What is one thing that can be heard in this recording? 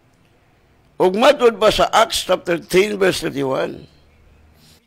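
A middle-aged man speaks calmly into a close microphone, reading out.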